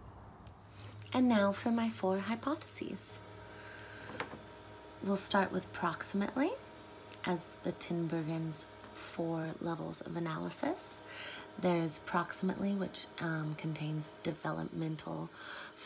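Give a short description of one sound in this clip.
A woman talks calmly and warmly, close to the microphone.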